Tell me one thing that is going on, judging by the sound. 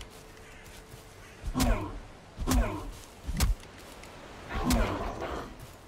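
Weapon blows strike creatures in a game fight.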